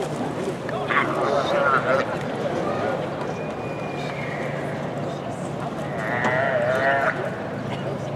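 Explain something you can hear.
A calf bawls loudly.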